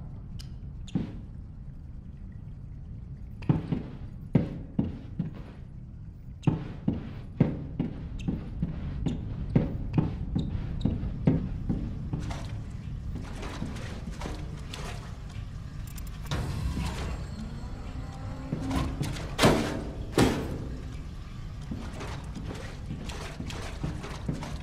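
Footsteps clank on a metal floor.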